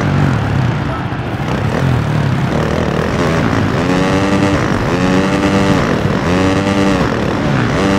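A dirt bike engine revs and whines, rising and falling in pitch.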